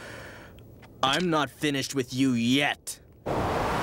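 A young man shouts fiercely up close.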